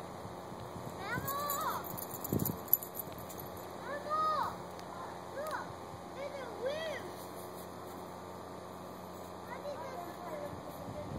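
A dog whines in short high cries.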